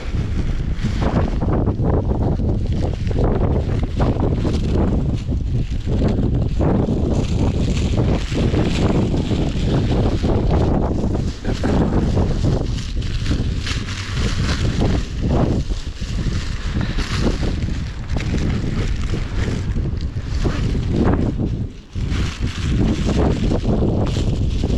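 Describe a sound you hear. Strong wind buffets and roars, outdoors.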